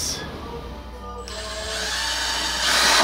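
A cordless drill whirs.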